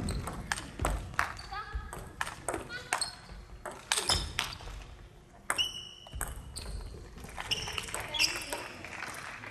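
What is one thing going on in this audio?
Sneakers squeak on the wooden floor.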